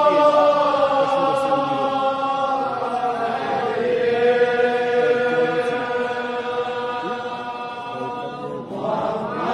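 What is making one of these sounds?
A man chants in a long, drawn-out voice through a loudspeaker in an echoing hall.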